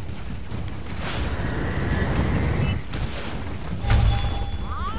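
Magic blasts burst with loud whooshes.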